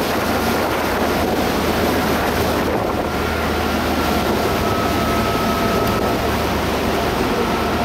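Water rushes and splashes along a moving boat's hull.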